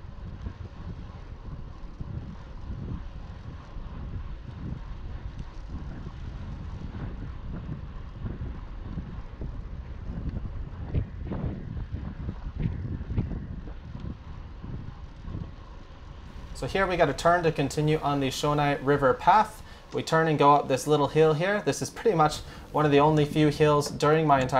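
Bicycle tyres roll steadily on a paved path.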